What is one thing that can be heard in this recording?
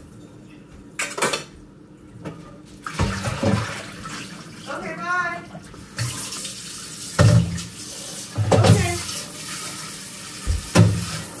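Dishes clatter and clink in a sink.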